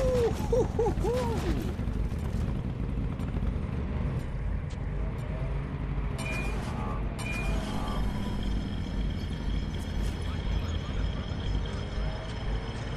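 A motorcycle engine rumbles steadily as it rides along.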